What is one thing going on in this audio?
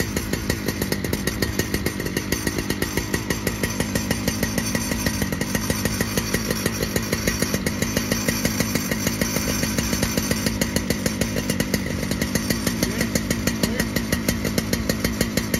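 A chainsaw cuts through a log.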